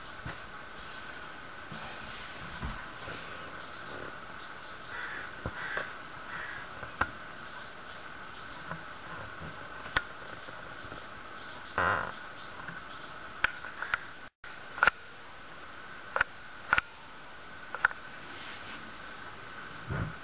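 A small bird scratches and rustles in dry leaves.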